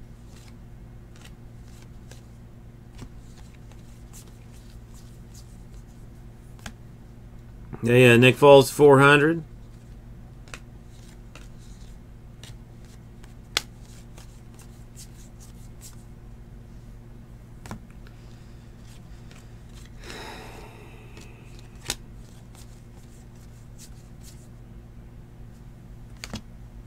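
Stiff cards softly flick and slide against each other, close by.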